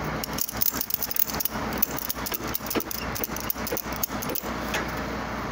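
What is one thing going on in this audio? A ratchet strap clicks rapidly as it is tightened.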